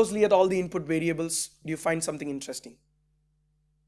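A young man speaks calmly into a microphone, like a lecturer giving a talk.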